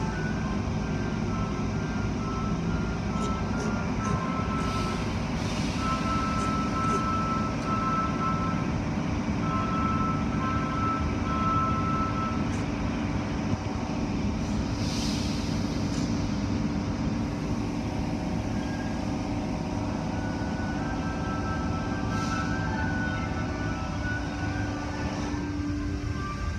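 Washing machinery hums and whirs steadily.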